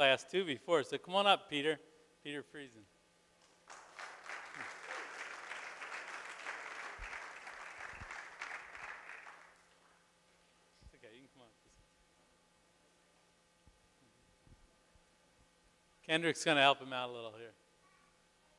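A man speaks through a microphone and loudspeakers in a large hall.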